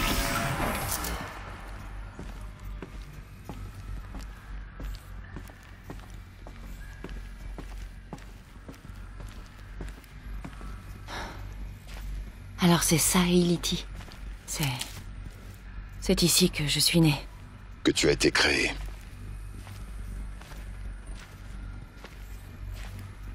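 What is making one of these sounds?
Footsteps tap steadily on hard floors and metal stairs.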